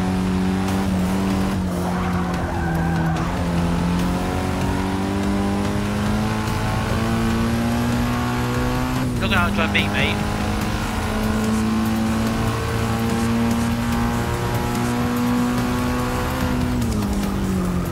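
A car engine roars steadily, climbing in pitch and dropping briefly at each gear change.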